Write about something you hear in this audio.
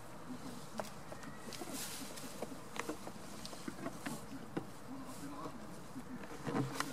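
Small hooves clatter and knock on wooden boards.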